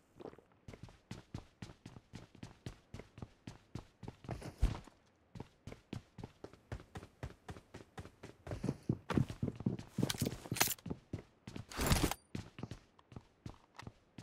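Quick footsteps thud steadily as a game character runs.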